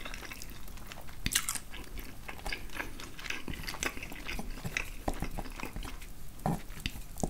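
A fork clinks and scrapes against a wooden board.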